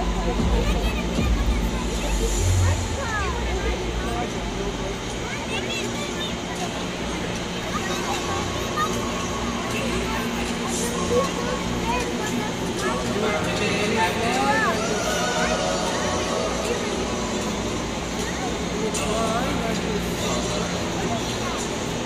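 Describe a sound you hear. A large crowd chatters in a big echoing arena.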